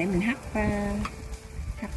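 Liquid bubbles and simmers in a pot.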